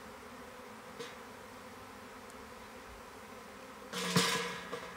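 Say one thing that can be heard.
Wooden hive frames knock and scrape as they are lifted.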